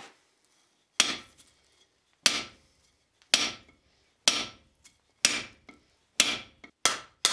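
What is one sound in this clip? A hammer strikes hot metal on an anvil with ringing blows.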